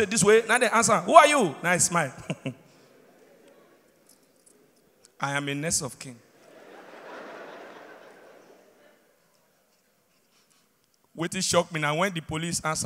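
A young man talks with animation into a microphone in a large hall.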